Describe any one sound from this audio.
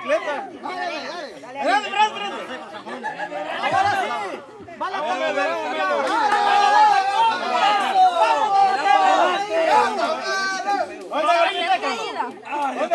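A group of young men shout and cheer excitedly outdoors nearby.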